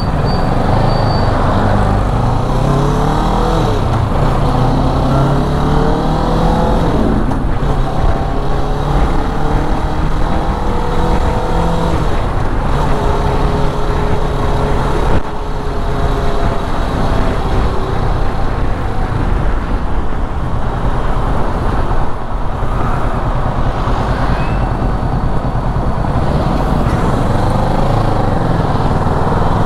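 A motorcycle engine hums and revs up and down close by.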